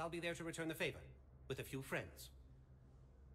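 A man speaks calmly and warmly, heard close up.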